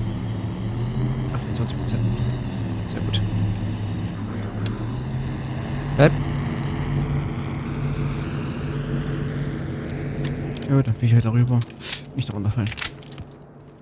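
Drones hum and whine steadily overhead.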